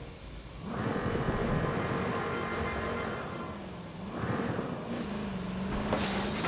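A car engine revs and rumbles.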